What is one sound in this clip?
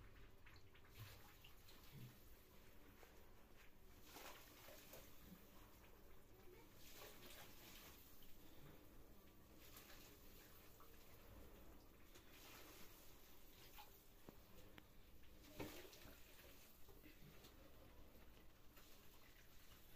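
Hands softly scrape and stir powder in a metal basin.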